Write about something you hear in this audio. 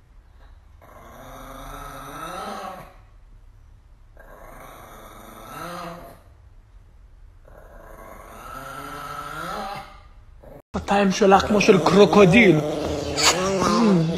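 A small dog howls along in a high voice.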